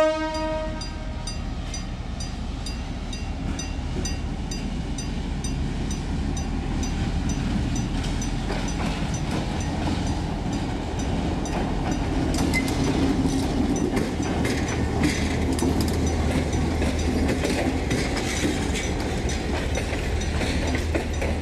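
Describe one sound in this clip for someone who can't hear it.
A diesel locomotive rumbles as it approaches and passes close by.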